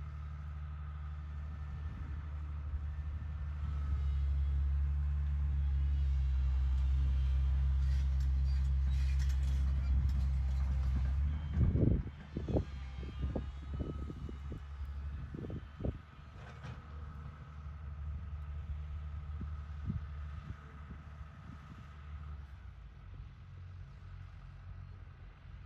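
A heavy diesel engine rumbles steadily nearby, growing louder and then easing off.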